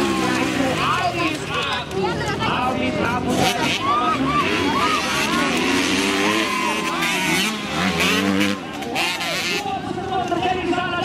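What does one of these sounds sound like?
Motorcycle engines rev loudly, rising and falling in pitch.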